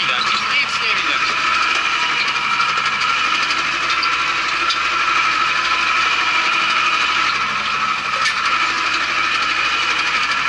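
Field soil rattles and rumbles under the tyres.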